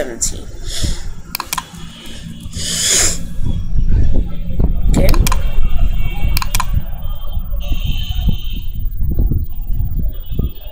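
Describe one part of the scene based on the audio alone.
A boy speaks calmly and close to a microphone.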